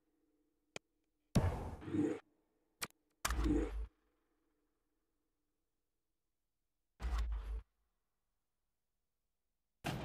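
Short electronic menu whooshes and clicks sound from a video game.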